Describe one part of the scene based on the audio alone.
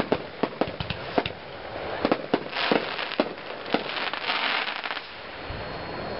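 Fireworks bang and crackle in rapid bursts.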